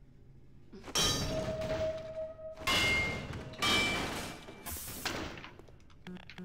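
Wooden crates splinter and crash as they are smashed.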